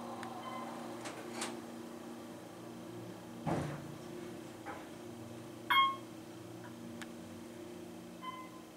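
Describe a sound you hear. An elevator hums steadily as it moves.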